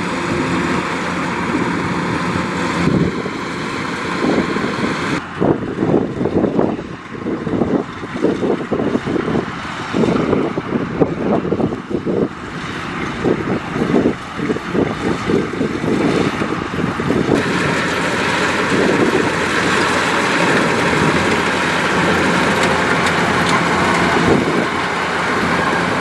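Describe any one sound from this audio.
A combine harvester engine rumbles steadily close by.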